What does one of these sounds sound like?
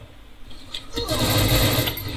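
A gun fires in rapid shots.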